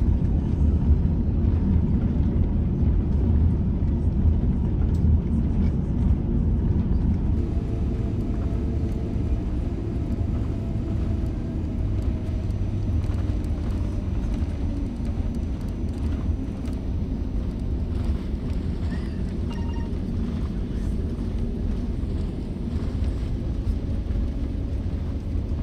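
A jet engine rumbles steadily, heard from inside an aircraft cabin as the plane rolls along.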